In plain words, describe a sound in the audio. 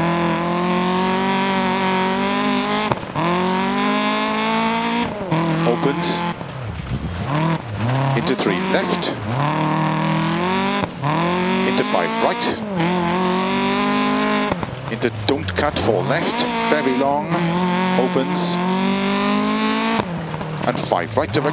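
A rally car engine revs hard, rising and dropping in pitch with each gear change.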